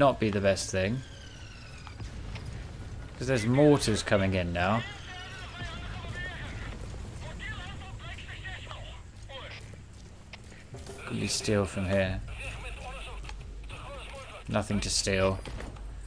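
Footsteps shuffle softly over dirt and floorboards.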